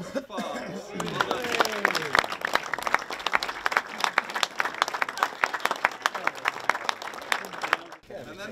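A crowd claps and cheers.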